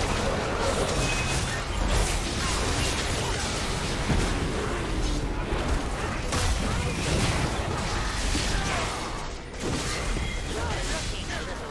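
Video game spells and attacks whoosh, crackle and clash in a busy fight.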